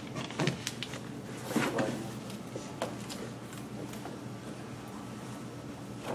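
Paper rustles as a sheet is handed over.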